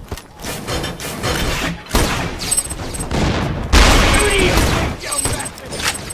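A heavy metal chest bangs open.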